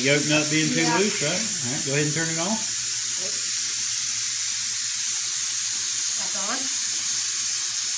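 Compressed air hisses steadily from a scuba tank valve.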